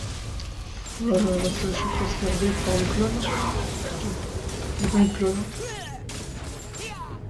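Magic blasts whoosh and crackle in a fast fight.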